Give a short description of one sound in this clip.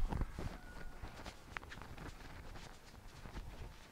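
A plastic bag crinkles in a man's hands.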